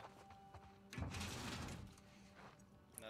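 A metal drawer slides open.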